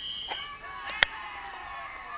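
A football thuds onto the ground.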